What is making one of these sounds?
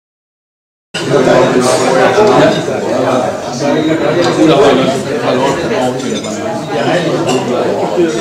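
A group of men and women chatter together.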